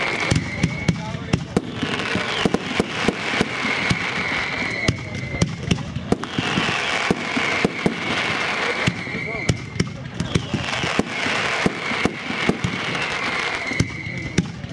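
Fireworks bang and pop in quick bursts overhead.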